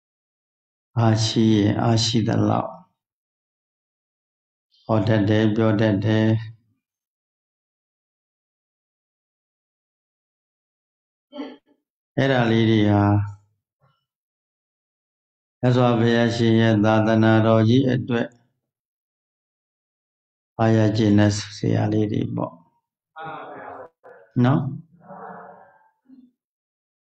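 A man chants slowly and evenly into a microphone, heard through an online call, with pauses between phrases.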